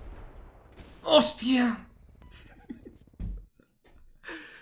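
A young man exclaims loudly close to a microphone.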